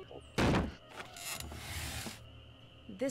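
A wooden door creaks.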